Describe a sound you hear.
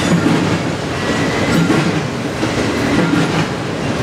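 Metal wheels squeal faintly on the rails.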